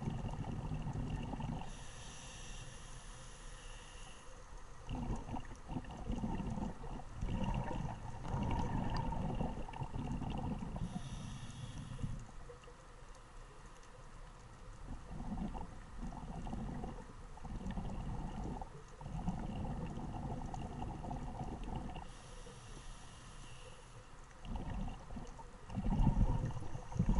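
Air bubbles gurgle and rumble out from a diver's regulator underwater.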